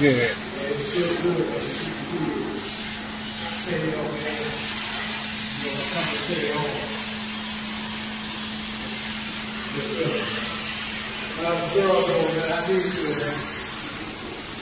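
A carpet cleaning machine hums steadily nearby.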